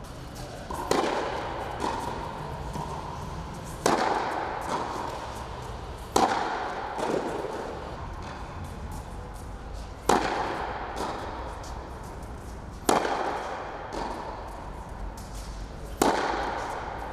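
Tennis balls are struck hard with rackets, echoing in a large hall.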